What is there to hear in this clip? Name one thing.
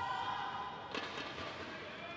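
A racket strikes a shuttlecock with a sharp pop.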